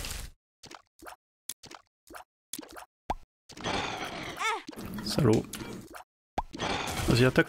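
Short game sound effects pop and splat in quick bursts.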